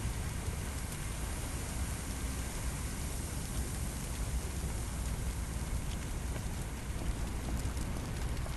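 A fire hose sprays water in a steady hiss.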